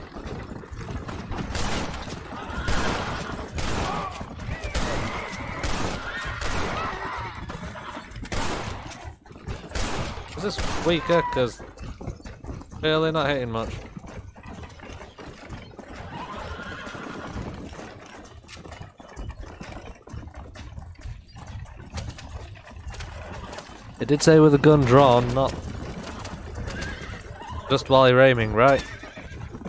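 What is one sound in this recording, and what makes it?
A horse-drawn wagon rattles along a dirt track.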